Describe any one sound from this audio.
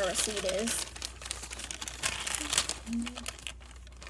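Paper rustles as it unrolls.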